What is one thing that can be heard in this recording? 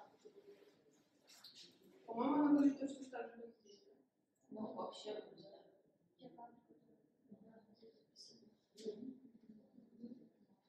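A young woman speaks calmly at a short distance, with pauses.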